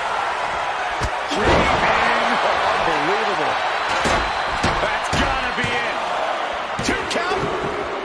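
A body slams heavily onto a wrestling mat with loud thuds.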